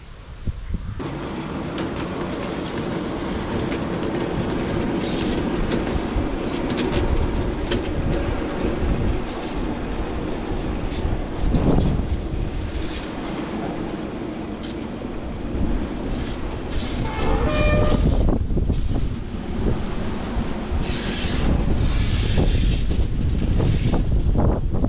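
A miniature train engine hums and rattles along its track.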